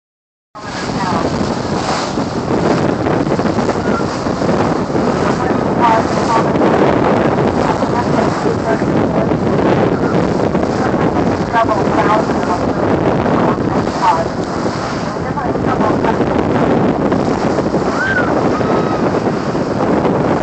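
Water rushes and splashes along the side of a moving boat.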